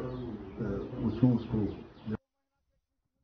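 An elderly man speaks calmly into microphones close by.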